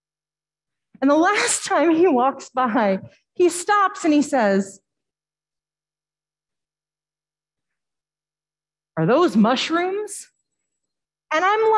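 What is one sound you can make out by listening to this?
A woman speaks calmly into a microphone in short bursts with pauses, heard through an online call.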